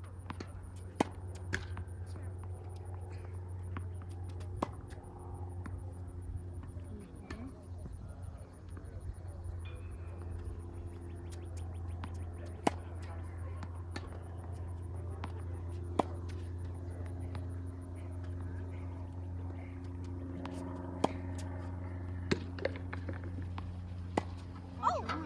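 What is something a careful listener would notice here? Tennis balls are struck by rackets with sharp pops.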